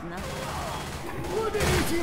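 A submachine gun fires in short bursts.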